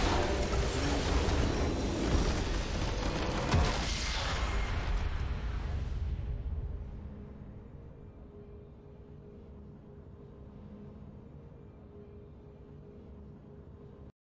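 A triumphant game fanfare swells and then settles into a quiet hum.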